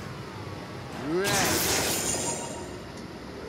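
A whooshing burst sounds as a kart drives through item boxes.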